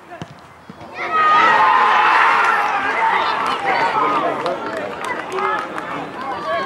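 Children and spectators cheer and shout loudly outdoors.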